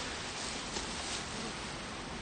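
A wooden hive box knocks softly as it is set down.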